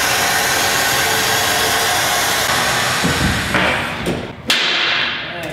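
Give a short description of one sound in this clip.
A car lift hisses and whirs loudly, then stops with a clunk.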